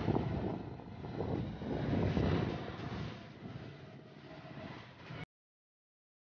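Small motor scooters drone as they ride along.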